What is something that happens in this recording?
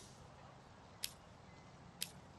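A game menu clicks twice.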